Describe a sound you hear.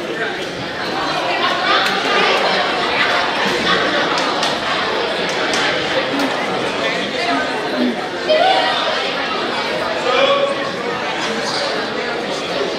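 Young players talk and call out close by.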